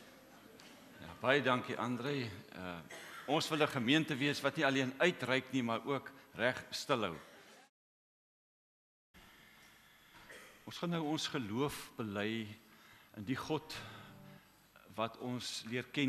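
A man speaks calmly through a microphone, echoing in a large hall.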